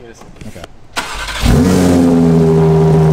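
A sports car engine starts with a loud roar.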